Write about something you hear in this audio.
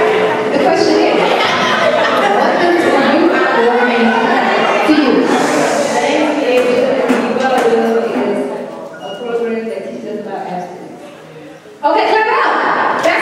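A young man sings into a microphone through loudspeakers in a large echoing hall.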